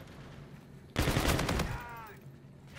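A rapid burst of gunfire rattles close by.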